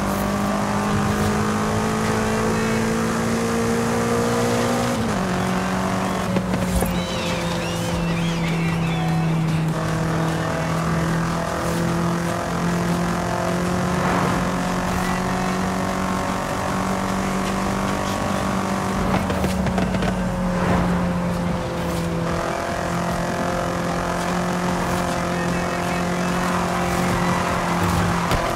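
A car engine roars steadily at high speed, shifting gear now and then.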